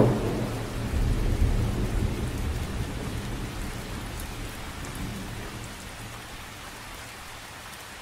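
Wind rumbles outdoors and slowly dies down.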